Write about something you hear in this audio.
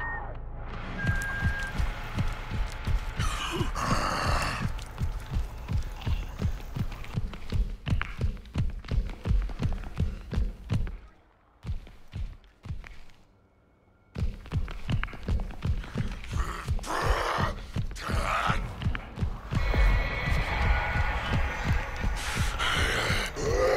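Quick running footsteps thud on the ground.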